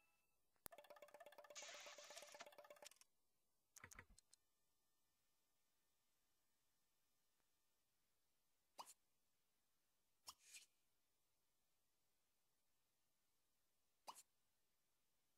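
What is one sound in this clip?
Short electronic game sounds chime and swoosh now and then.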